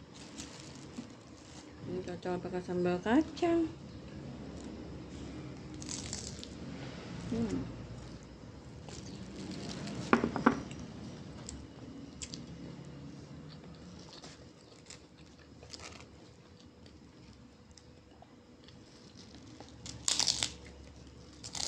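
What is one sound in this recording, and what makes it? Paper crinkles softly as food is picked up by hand.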